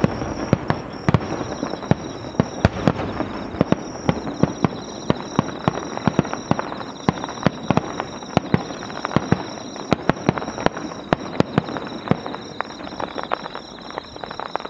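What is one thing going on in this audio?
Fireworks burst and crackle with many sharp pops in the distance.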